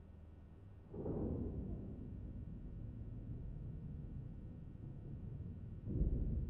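Debris rumbles and clatters as a body falls down a shaft.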